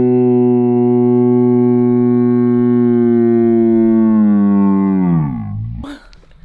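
A young woman sings a long, loud held note that slides down and breaks off.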